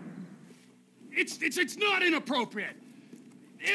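A man shouts angrily, close by.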